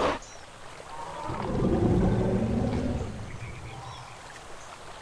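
A large creature lets out a deep, rumbling roar.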